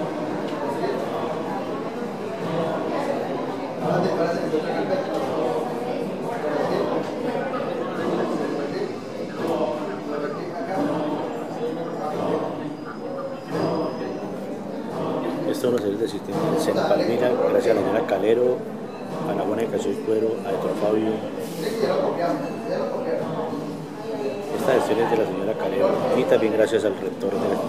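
Many adults chatter in a room.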